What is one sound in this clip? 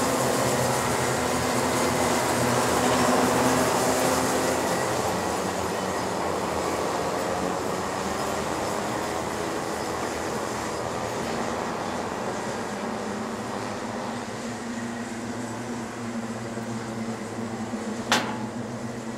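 Kart engines buzz and whine as karts race around a track.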